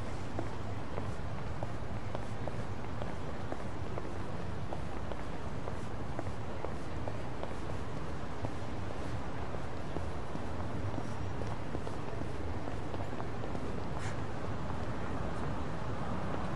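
City traffic hums steadily in the background.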